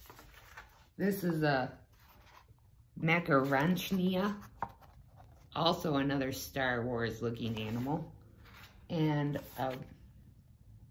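A woman reads aloud with animation, close by.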